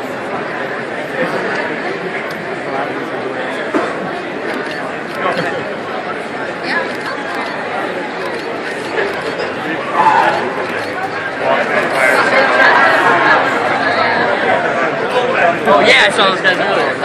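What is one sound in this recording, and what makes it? A large crowd chatters loudly in a big echoing hall.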